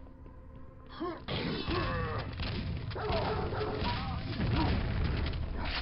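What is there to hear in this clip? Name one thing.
A monster growls and snarls nearby.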